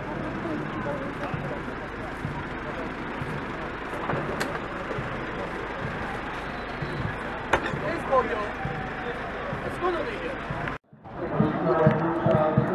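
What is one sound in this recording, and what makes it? A crowd of men talk and call out outdoors.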